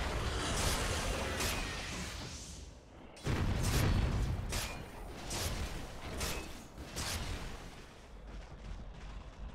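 Game spells whoosh and crash during a fight.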